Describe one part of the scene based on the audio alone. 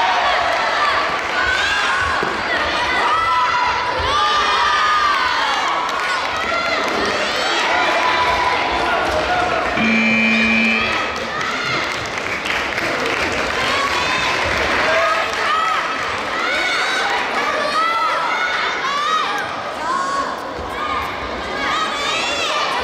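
A crowd of young people shouts and cheers loudly in a large echoing hall.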